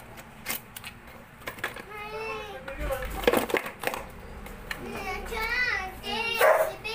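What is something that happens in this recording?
Hard plastic rattles and clicks as it is handled.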